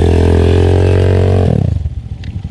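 A dirt bike engine roars loudly close by.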